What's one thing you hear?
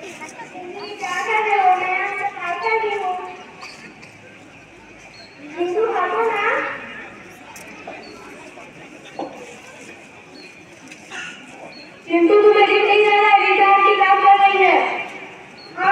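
A young girl speaks loudly into a microphone outdoors.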